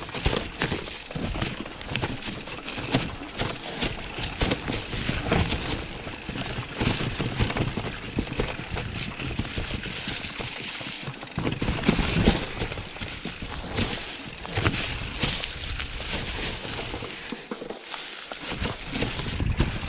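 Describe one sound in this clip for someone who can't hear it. A bicycle rattles and clatters over bumps.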